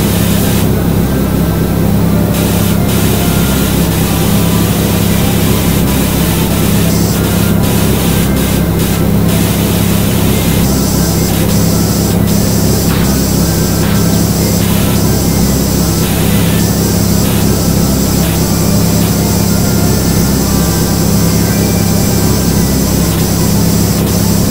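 A pressure washer sprays a hissing jet of water.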